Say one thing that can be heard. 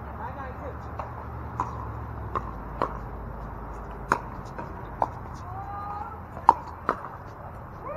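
Paddles pop against a plastic ball in a quick rally outdoors.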